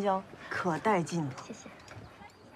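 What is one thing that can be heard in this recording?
A young woman speaks brightly nearby.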